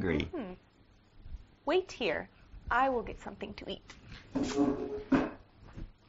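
A young woman speaks with animation into a clip-on microphone, close by.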